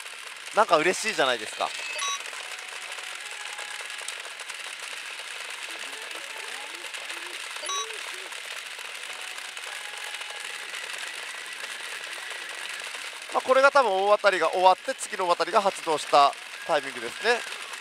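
A pachinko machine plays electronic chimes and music.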